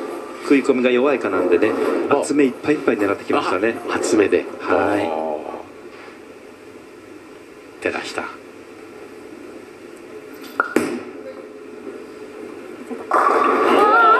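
Bowling pins crash and scatter.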